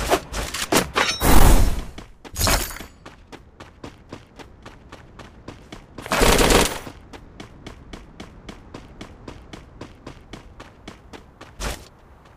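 Quick footsteps patter steadily on a hard floor.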